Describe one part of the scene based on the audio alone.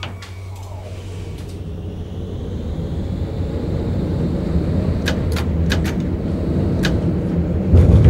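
A tram rumbles louder as it speeds up along the rails.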